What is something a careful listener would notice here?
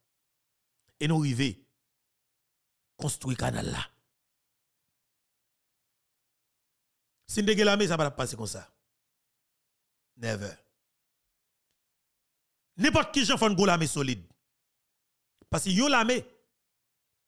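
A man speaks into a close microphone in short bursts with pauses.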